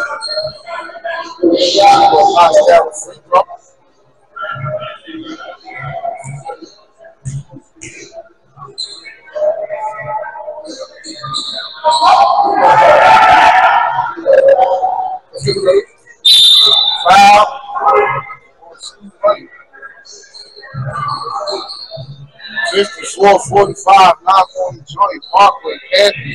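Men shout and call out during a basketball game in an echoing gym.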